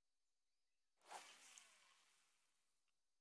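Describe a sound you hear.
A fishing line whooshes out as a rod is cast.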